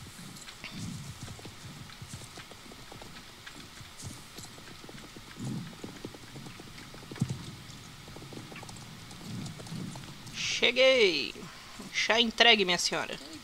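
Horse hooves clop steadily on the ground.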